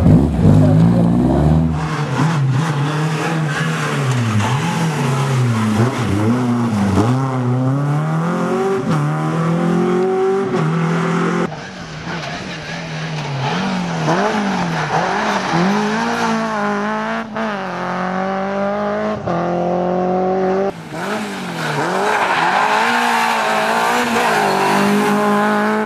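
A rally car engine revs hard, rising and falling sharply as it shifts gears.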